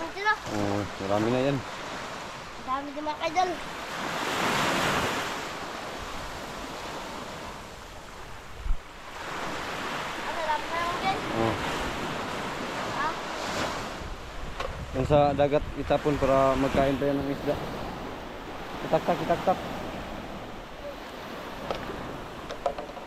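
Waves wash onto a sandy shore.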